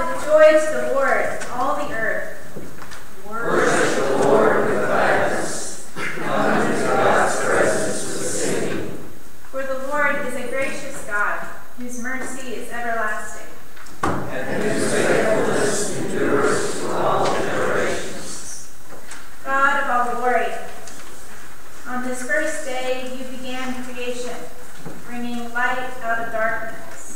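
An adult speaks steadily through a microphone in a large echoing hall.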